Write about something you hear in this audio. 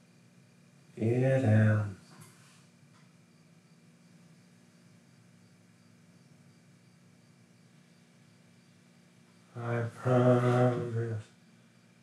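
A man speaks close by in two short bursts.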